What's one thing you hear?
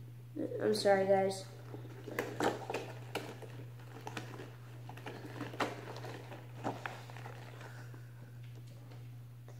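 Fabric rustles and crinkles as a boy handles it.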